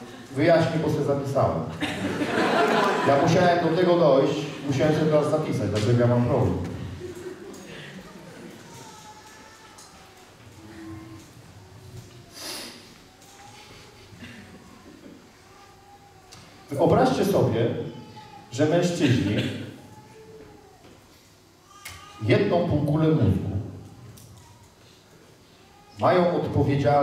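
A man speaks aloud in a large echoing hall, pausing at times.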